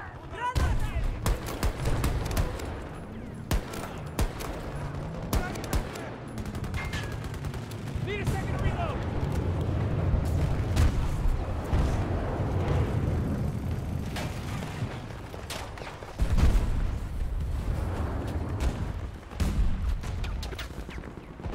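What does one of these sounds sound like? A rifle fires in rapid bursts at close range.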